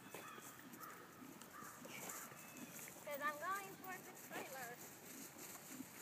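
A horse's hooves thud on grass as it trots.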